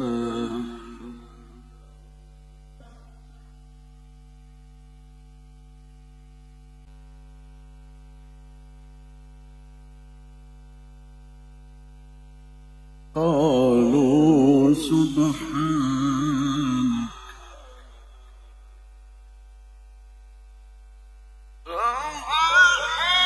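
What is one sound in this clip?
An elderly man chants melodically into a microphone, heard through loudspeakers, with long pauses between phrases.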